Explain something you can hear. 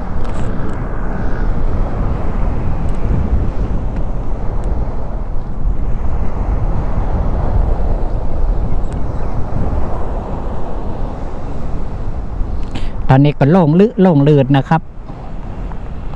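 Small waves wash onto a shore.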